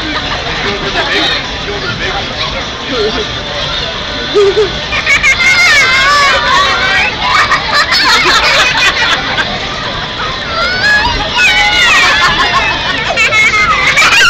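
A crowd of young children chatter and cheer close by.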